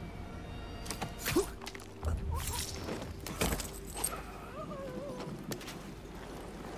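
Footsteps thud and scrape on debris.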